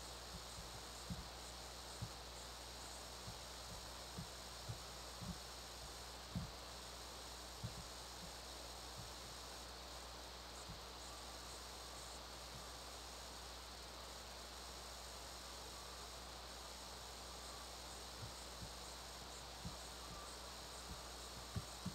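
Fingers tap softly on a touchscreen.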